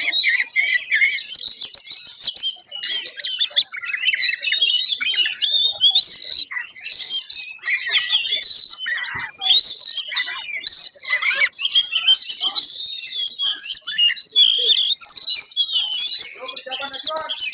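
An oriental magpie-robin sings rapid, varied phrases.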